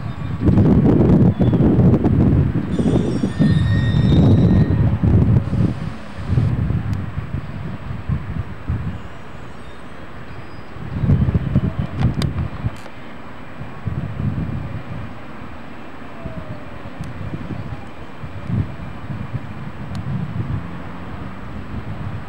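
An electric train rolls along an elevated track with a low rumble.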